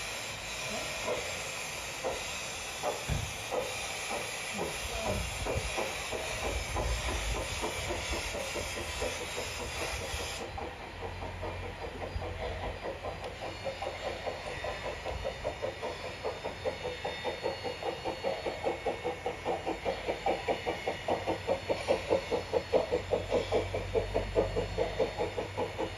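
A small steam locomotive chuffs in a quick, steady rhythm, growing louder as it draws near.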